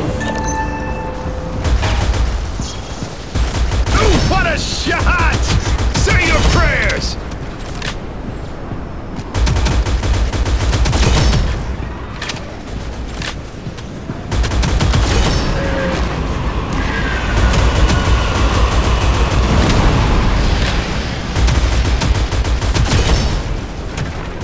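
A rapid-fire gun fires in quick bursts.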